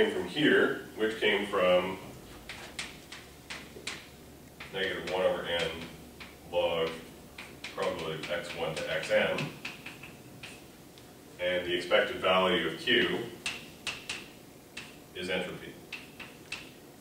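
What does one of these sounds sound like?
A young man lectures calmly.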